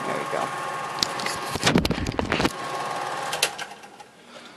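A tape recorder's buttons click and clunk.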